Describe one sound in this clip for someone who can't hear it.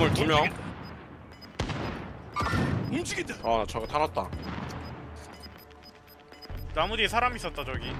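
Rifle shots crack sharply in quick bursts.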